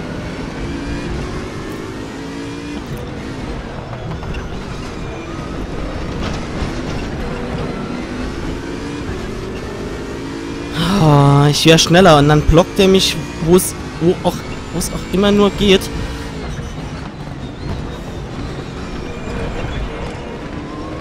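A racing car engine roars and revs up and down through the gears.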